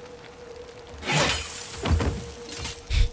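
Metal scrapes and grinds, throwing sparks.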